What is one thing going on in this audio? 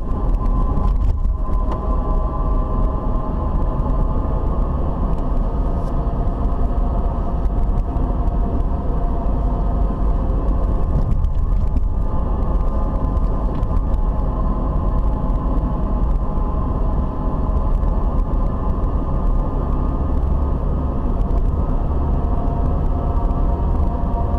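Tyres roll steadily on a paved road.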